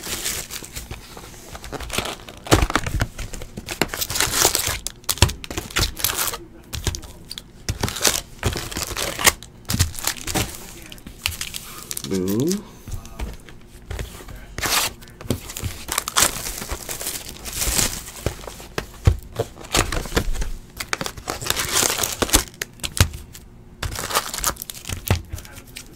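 Plastic wrappers and cardboard rustle and crinkle close by.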